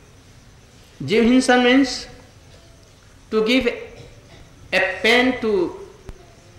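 An elderly man speaks slowly and calmly into a microphone, in short phrases with pauses.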